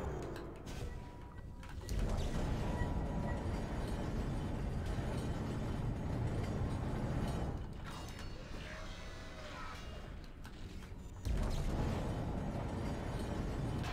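An energy beam hums and crackles.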